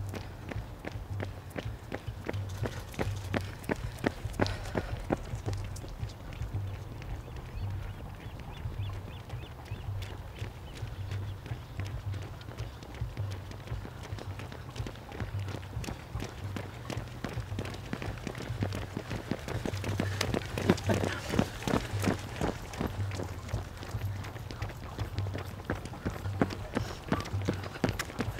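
Running shoes patter on tarmac as runners pass close by.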